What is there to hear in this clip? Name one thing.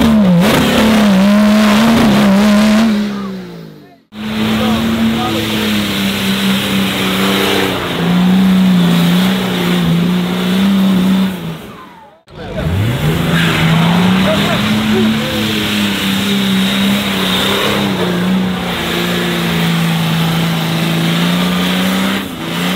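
Tyres spin and churn through thick mud.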